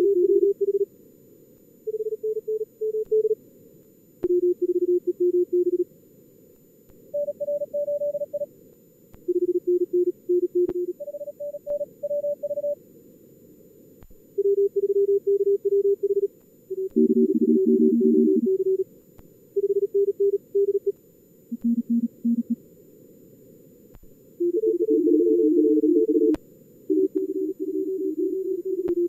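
Morse code beeps in quick bursts of steady tones at several different pitches.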